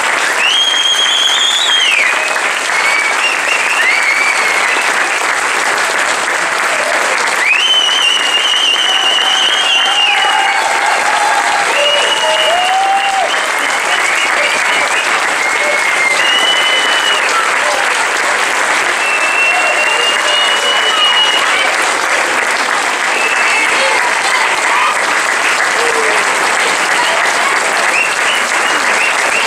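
An audience applauds loudly in a large echoing hall.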